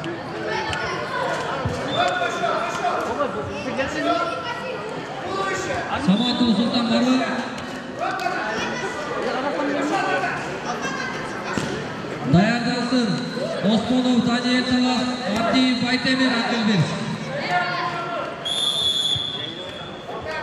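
A man commentates with animation through a loudspeaker in a large echoing hall.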